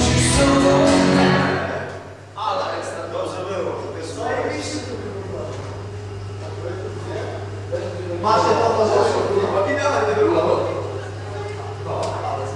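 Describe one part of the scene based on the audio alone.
A man plays an electric guitar.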